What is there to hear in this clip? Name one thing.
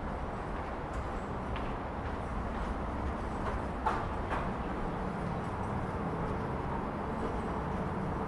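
Footsteps echo along a tiled underpass.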